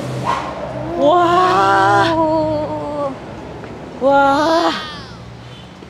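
A young man shouts excitedly in drawn-out calls.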